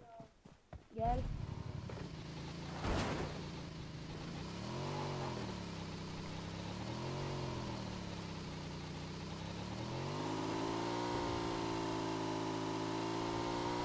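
A motorcycle engine starts and revs, rising and falling in pitch as it rides.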